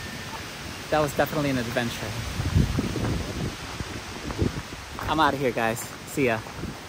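A man talks cheerfully and close to the microphone, outdoors.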